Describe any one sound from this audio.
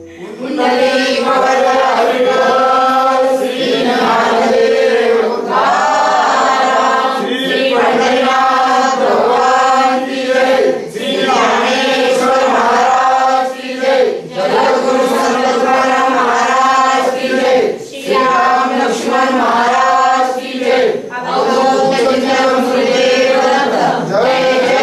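A group of men sing a chant together nearby.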